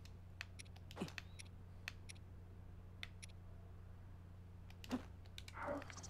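Soft menu blips tick as selections change.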